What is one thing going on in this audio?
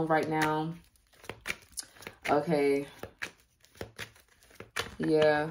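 Playing cards are shuffled with quick soft clicks and flutters.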